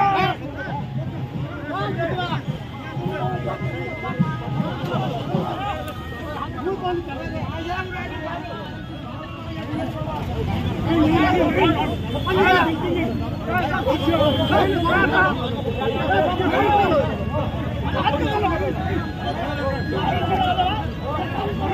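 A crowd of men shout and argue loudly and close by.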